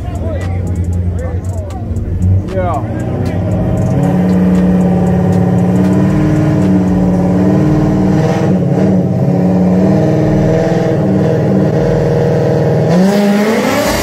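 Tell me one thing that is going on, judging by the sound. Powerful car engines rumble loudly while idling and revving.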